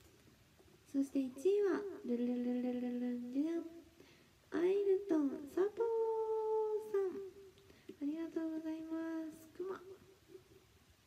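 A young woman sings a few held notes close into a microphone.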